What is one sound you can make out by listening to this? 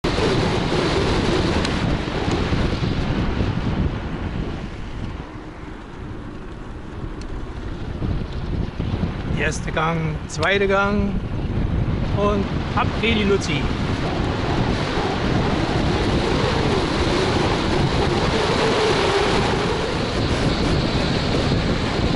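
Wind rushes loudly past a moving scooter.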